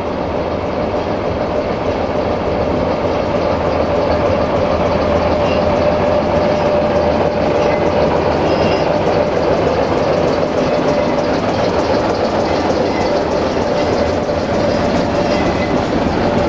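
A diesel locomotive engine rumbles and drones loudly as it approaches.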